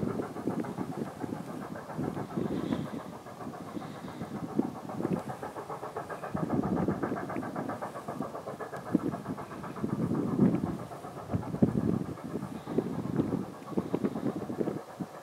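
A steam locomotive chuffs steadily in the distance.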